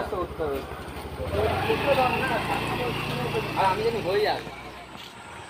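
A scooter engine runs and revs.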